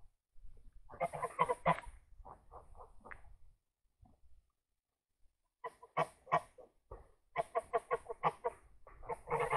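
A goose gives short quick cackles and clucks.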